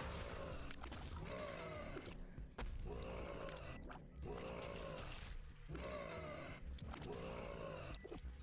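Game sound effects pop and splat rapidly.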